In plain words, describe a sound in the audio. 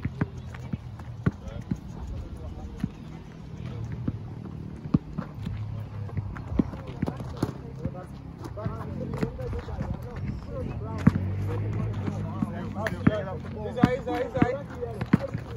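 A basketball bounces on hard ground.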